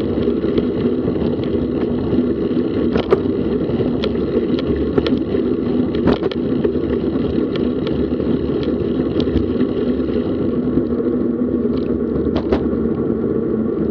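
Wind rushes steadily past a moving bicycle.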